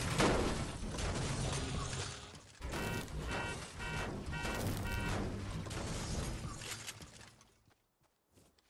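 A pickaxe strikes a car's metal body.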